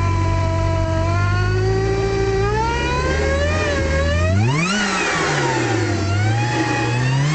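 A car engine revs up and down loudly.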